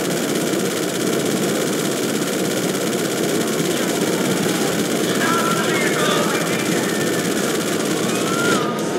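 A jet-powered bike roars steadily as it speeds along a road.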